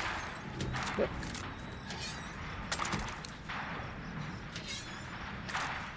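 Metal latches click and a case lid creaks open.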